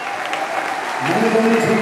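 A man speaks through a microphone over loudspeakers in a large hall.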